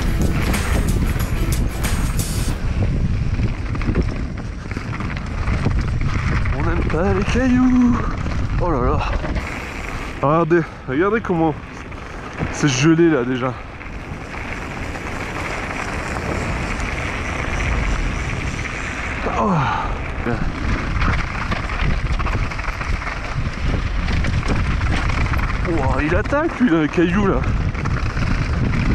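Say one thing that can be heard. Bicycle tyres crunch over loose gravel and rocks.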